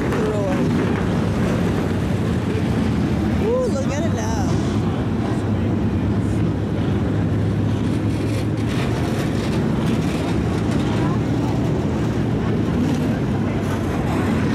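Race car engines roar steadily around a track.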